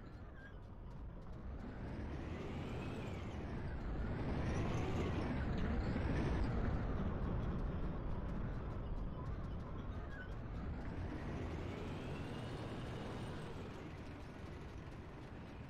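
A heavy tank engine rumbles nearby, its pitch rising and falling.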